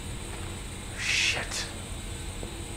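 A man mutters a curse under his breath.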